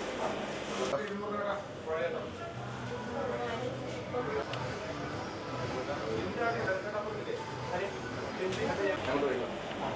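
A crowd murmurs and chatters indoors.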